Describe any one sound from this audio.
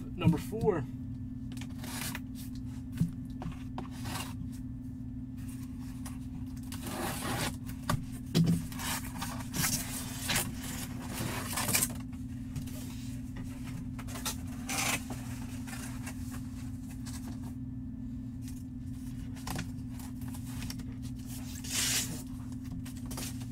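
Cardboard boxes rustle and scrape as hands handle them.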